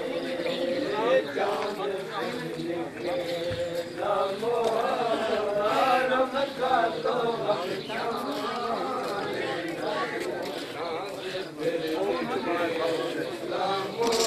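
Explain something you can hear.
Men beat their chests with their hands in a steady rhythm.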